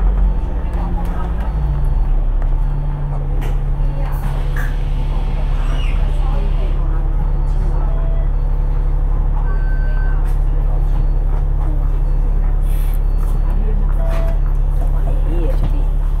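A bus engine hums and rumbles steadily from close by.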